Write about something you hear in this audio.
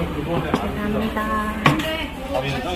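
A plate is set down on a wooden table.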